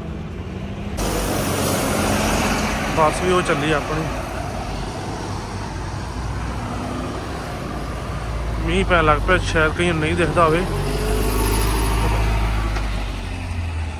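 Traffic hums on a street outdoors.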